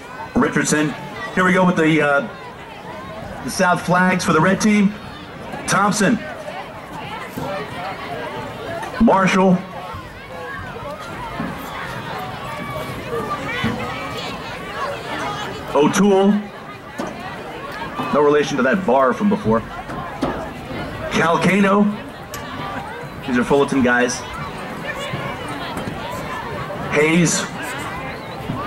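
A man speaks loudly close by in short bursts.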